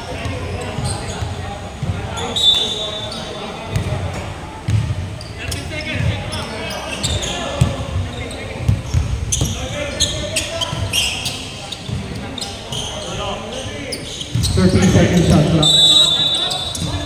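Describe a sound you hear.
Young men call out to each other during play.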